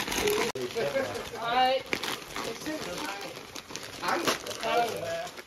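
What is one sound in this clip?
Wrapping paper crinkles and tears.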